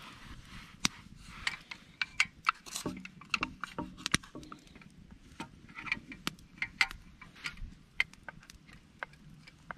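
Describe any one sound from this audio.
A spoon scrapes and clinks against a cup.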